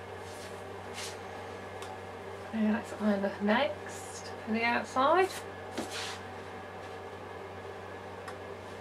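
Fabric rustles softly as hands move it about.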